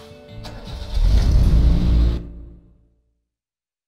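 A truck engine rumbles and then fades away.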